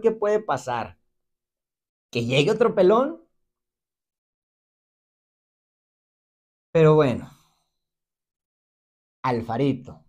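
A young man speaks with animation close to a microphone, in short bursts with pauses.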